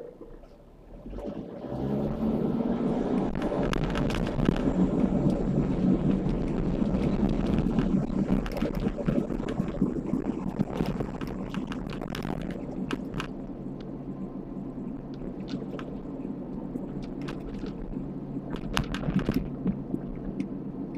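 A car engine hums steadily from inside as the car drives along a road.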